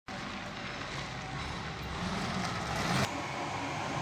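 A double-decker bus drives by with its diesel engine running.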